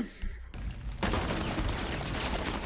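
A wall breaks apart with a loud crash.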